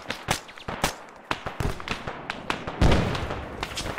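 Gunshots crack nearby in quick bursts.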